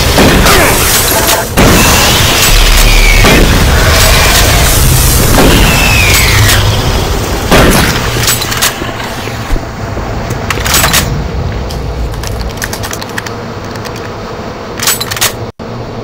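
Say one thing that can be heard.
A shotgun fires with loud booming blasts.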